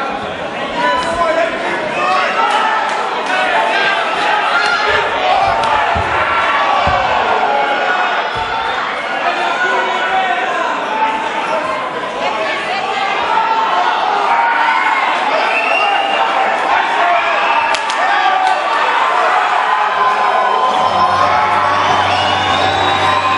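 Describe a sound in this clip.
A large crowd shouts and cheers loudly.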